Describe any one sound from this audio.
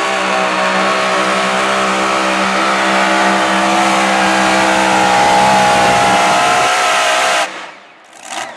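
A pulling tractor's engine roars loudly at high revs, then cuts off abruptly.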